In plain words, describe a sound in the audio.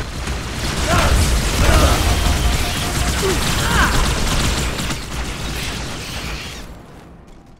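Energy weapons fire in rapid bursts with loud rumbling blasts.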